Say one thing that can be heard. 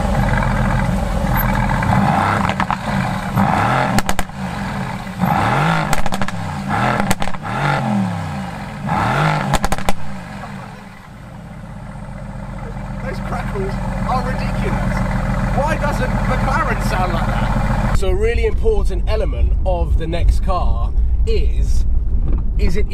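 A sports car engine idles with a deep rumble.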